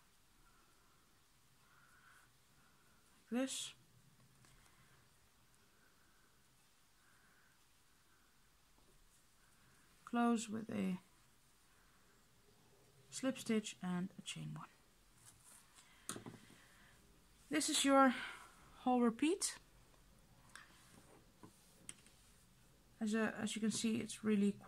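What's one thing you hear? Yarn rustles softly as a crochet hook pulls it through.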